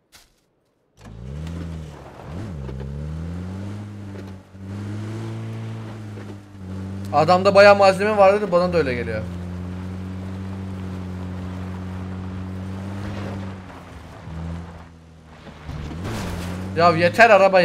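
A vehicle engine hums steadily and revs as it drives.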